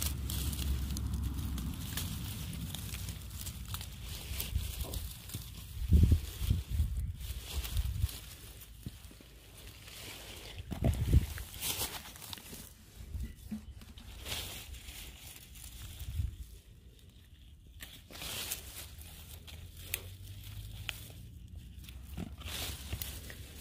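Leaves rustle and crackle close by.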